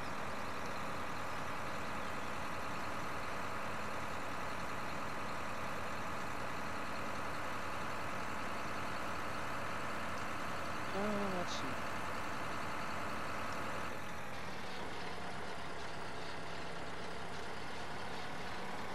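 A tractor engine drones steadily, then drops to a lower idle as it slows.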